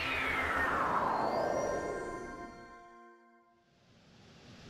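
A shimmering magical chime sweeps downward and fades away.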